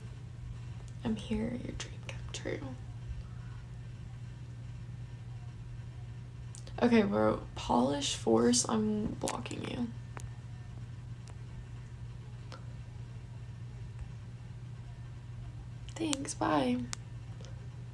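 A young woman speaks calmly and close to a microphone, in short phrases with pauses.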